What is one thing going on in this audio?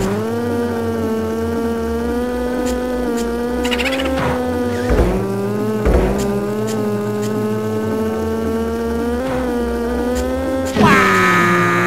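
A kart engine hums steadily, its pitch rising and dipping slightly.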